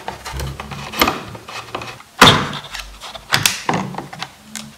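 A metal cover plate clatters and scrapes as hands lift it out.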